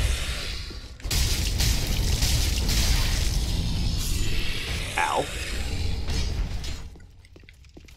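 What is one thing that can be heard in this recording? Fire roars in a burst.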